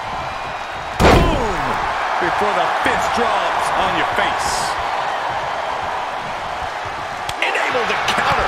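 A heavy body thuds hard onto a wrestling ring.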